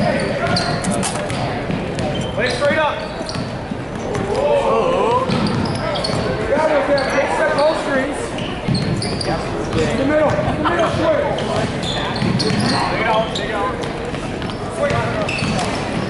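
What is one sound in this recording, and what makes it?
A crowd chatters and cheers throughout a large echoing gym.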